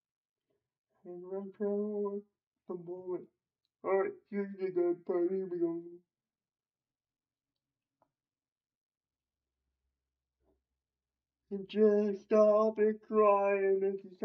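A young man sings close to a microphone, in short phrases with pauses between.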